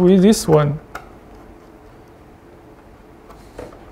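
A screwdriver scrapes against screw terminals.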